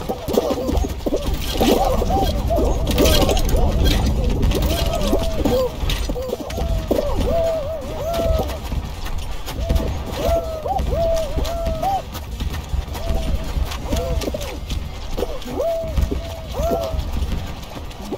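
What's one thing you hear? Upbeat electronic game music plays throughout.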